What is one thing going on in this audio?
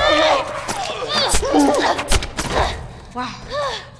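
Heavy blows thud into a body.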